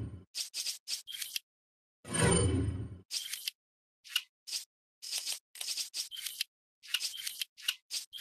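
Short electronic menu blips sound again and again.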